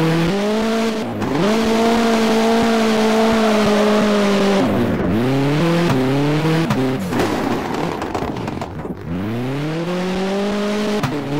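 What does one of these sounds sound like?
A racing car engine revs hard, rising and dropping in pitch as it shifts gears.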